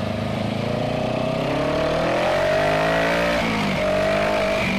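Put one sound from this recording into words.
A motorcycle engine revs up and then drops back.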